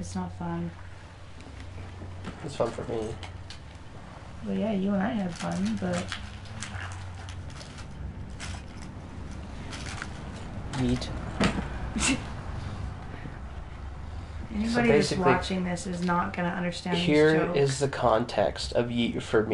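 A young woman talks casually into a microphone, close by.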